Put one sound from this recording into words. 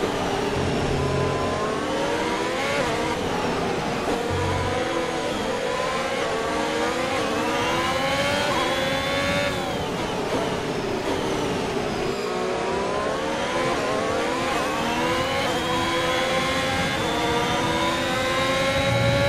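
A racing car engine revs high and shifts through gears.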